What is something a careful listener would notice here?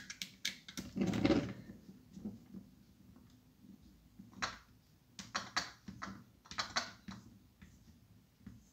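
Small plastic parts click and tap as they are handled close by.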